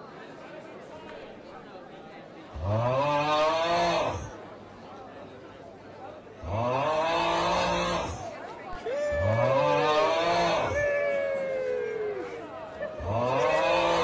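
A crowd of young people chatters in a large, echoing hall.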